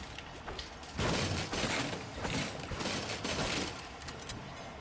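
A treasure chest opens with a bright, shimmering chime.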